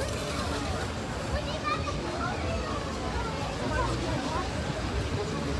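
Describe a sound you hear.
A crowd of people chatters and shouts all around, outdoors.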